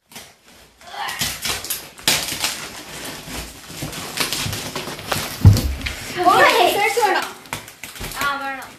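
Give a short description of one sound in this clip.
Packing tape and cardboard rustle and tear as a box is pulled open.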